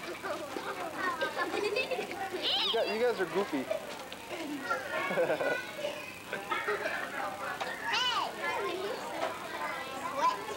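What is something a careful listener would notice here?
Young girls shout and laugh excitedly close by.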